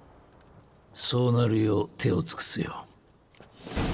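A man answers in a deep, gravelly voice.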